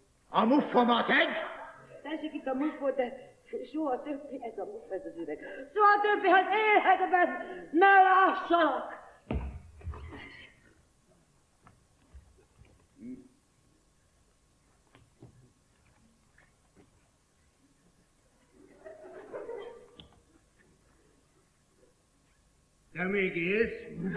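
An elderly woman speaks loudly and with animation on a stage.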